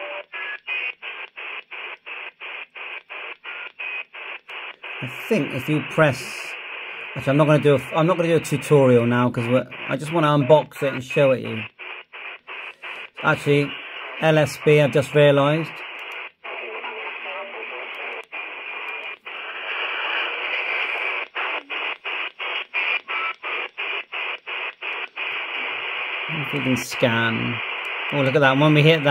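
A handheld radio hisses with static that cuts in and out rapidly as it scans.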